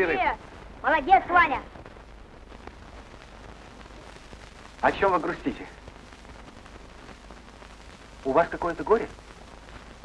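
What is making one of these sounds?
A boy speaks in short, high-pitched phrases close by.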